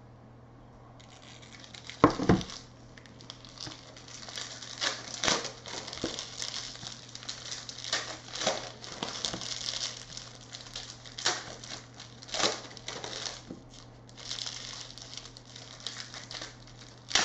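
Hands shuffle and rustle through stacks of trading cards.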